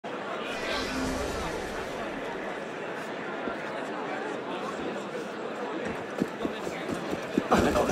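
A crowd murmurs and chatters in a busy street.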